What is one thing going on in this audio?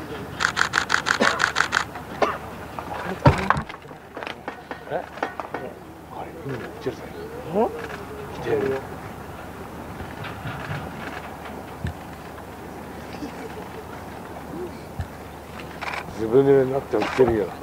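A crowd of men and women chatter outdoors at a distance.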